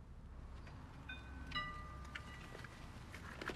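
A doorbell chimes.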